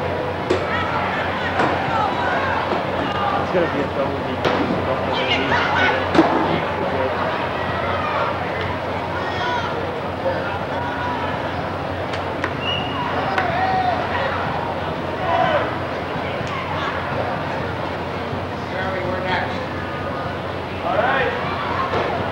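A large outdoor crowd chatters and shouts steadily.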